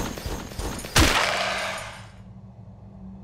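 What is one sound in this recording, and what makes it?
A blow strikes and bones shatter with a loud crash.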